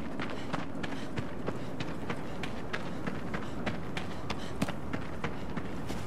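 Footsteps run quickly over grassy ground.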